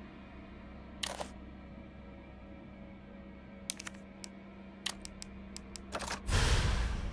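Short electronic menu clicks tick several times.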